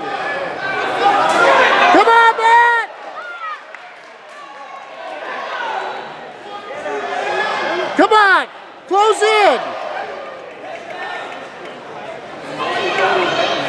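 A crowd of spectators cheers and shouts loudly in an echoing hall.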